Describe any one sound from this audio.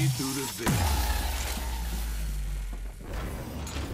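A weapon is handled and reloaded with metallic clicks.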